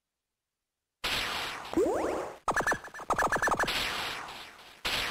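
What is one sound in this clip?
Electronic game sound effects zap and beep as shots are fired.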